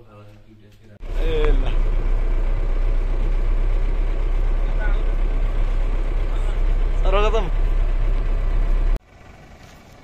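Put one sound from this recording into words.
A bus engine rumbles steadily inside the cabin.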